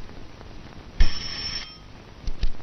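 A desk bell rings once with a short bright ring.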